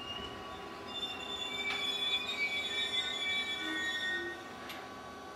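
Train wheels squeal high against the rails.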